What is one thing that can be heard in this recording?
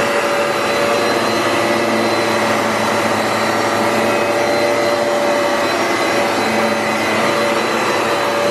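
An upright vacuum cleaner whirs steadily with a high motor whine.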